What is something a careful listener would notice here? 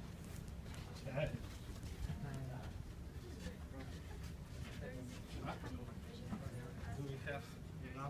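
Footsteps shuffle along a corridor.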